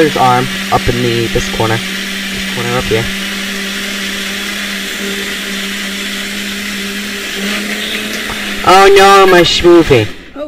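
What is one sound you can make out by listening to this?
A blender motor hums steadily.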